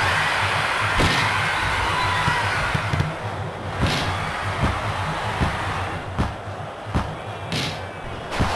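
A ball is kicked with dull thumps, again and again.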